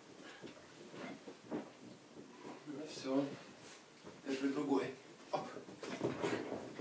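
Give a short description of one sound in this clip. Dog paws scramble and thump on a soft cushion.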